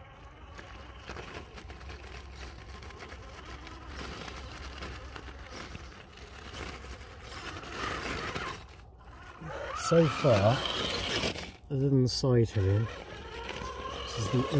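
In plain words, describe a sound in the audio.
Tyres scrabble and grind on loose rock and gravel.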